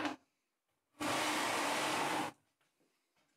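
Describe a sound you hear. A plastic bucket scrapes across a table.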